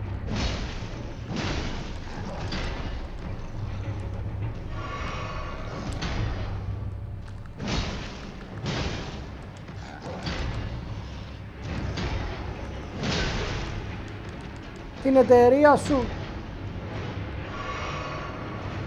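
Weapons clang and whoosh in a fierce fight.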